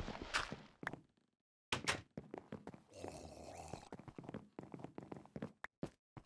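Dirt crumbles in short scrapes as a block is dug.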